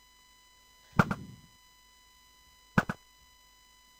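A bow twangs as an arrow is shot.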